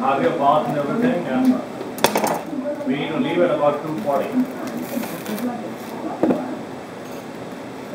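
Plastic cling wrap crinkles as it is pulled off a roll.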